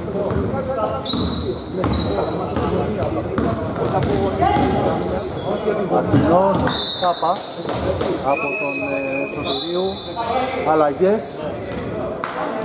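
Young men shout and call out to each other on the court.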